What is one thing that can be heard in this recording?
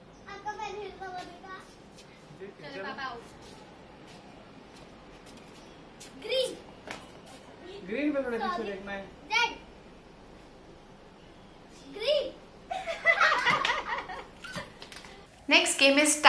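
A young girl talks excitedly outdoors.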